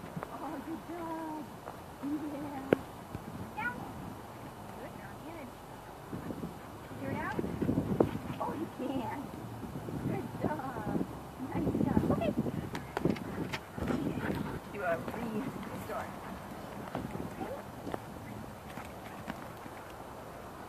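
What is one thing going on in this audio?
A young woman speaks to a dog in a bright, encouraging voice close by.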